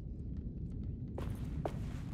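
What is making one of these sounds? Footsteps tread slowly.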